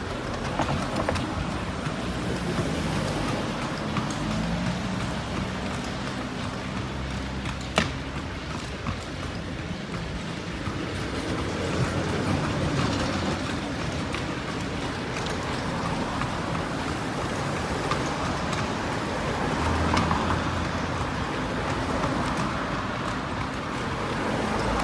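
Cars drive past close by.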